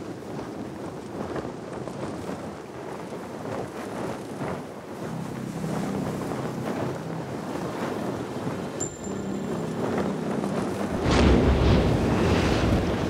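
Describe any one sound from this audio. A zipline cable hums and rattles as a rider slides along it.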